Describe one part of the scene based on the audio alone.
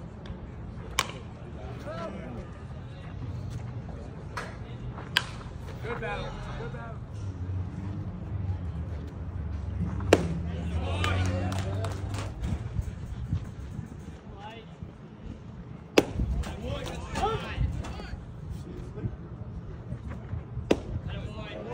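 A baseball pops sharply into a catcher's mitt.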